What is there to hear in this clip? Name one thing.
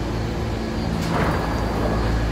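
Subway train doors slide shut with a thud.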